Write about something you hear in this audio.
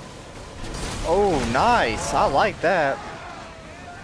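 A wooden ship crashes into another with a loud splintering smash.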